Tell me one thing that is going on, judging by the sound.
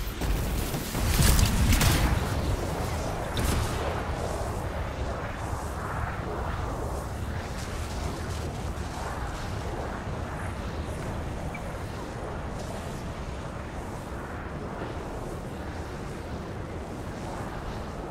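A jet pack roars steadily.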